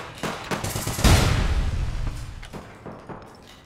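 A heavy explosion booms and rumbles.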